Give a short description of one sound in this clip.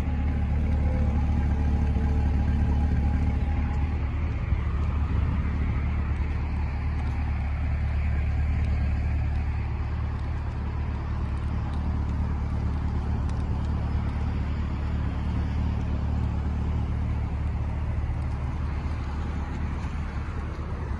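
A sports car engine idles with a deep, steady rumble from its exhausts.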